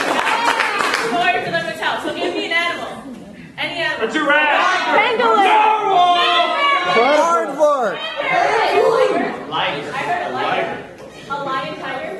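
A young woman talks with animation in a large echoing hall.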